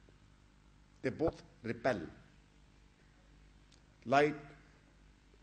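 An elderly man speaks with animation into a microphone, in short bursts.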